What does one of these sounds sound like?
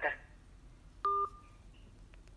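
A phone gives a short beep as a call ends.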